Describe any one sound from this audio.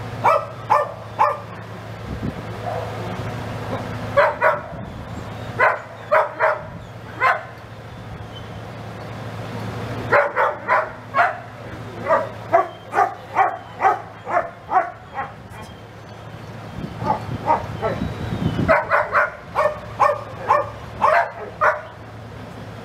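A woman speaks calmly to a dog outdoors.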